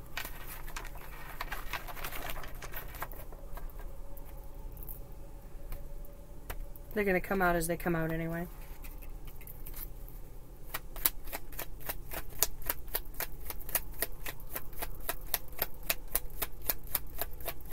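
Cards shuffle and riffle in a woman's hands.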